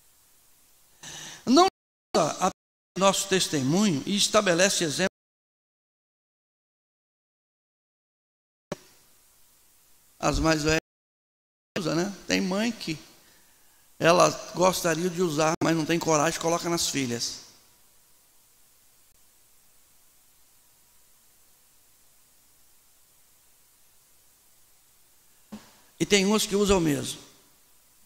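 A middle-aged man preaches with animation into a microphone, in bursts with long pauses.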